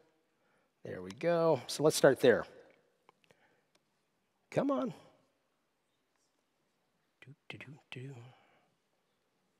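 A man speaks calmly into a microphone in short bursts with pauses.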